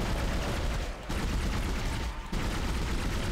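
A futuristic gun fires sharp, crackling shots.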